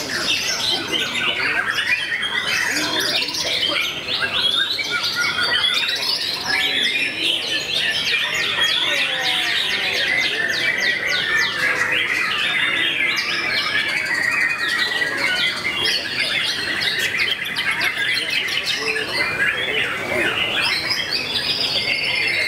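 A songbird sings a loud, varied song of rapid whistles and trills close by.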